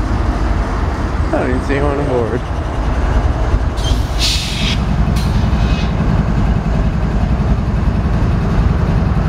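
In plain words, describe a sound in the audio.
Train wheels clatter over the rails.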